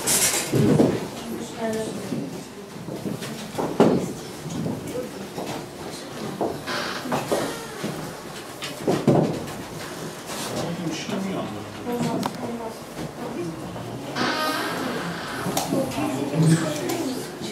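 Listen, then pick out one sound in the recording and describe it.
Several people talk at once nearby, in a room with a slight echo.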